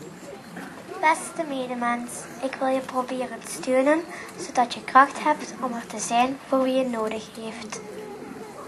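A young girl speaks softly into a microphone through a loudspeaker.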